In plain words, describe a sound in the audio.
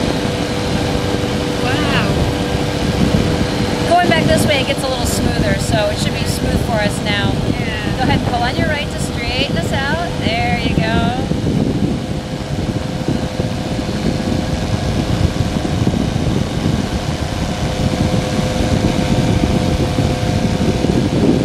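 Wind roars loudly and buffets.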